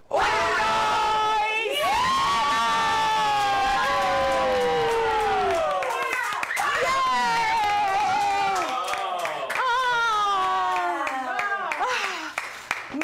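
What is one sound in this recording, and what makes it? A young woman shouts and sings out excitedly in long drawn-out cries.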